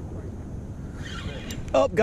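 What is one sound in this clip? A fishing reel whirs and clicks as its handle is turned.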